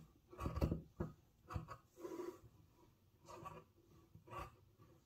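Scissors snip through thick fabric in short, repeated bursts.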